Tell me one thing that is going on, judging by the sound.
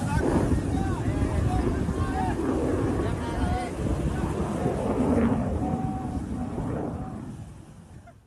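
People shout excitedly nearby.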